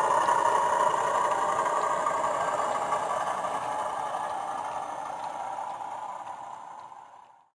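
A model freight train rumbles steadily along its track and slowly fades.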